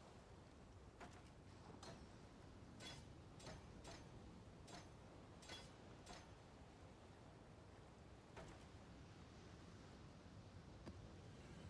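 Short game menu clicks and item sounds tick now and then.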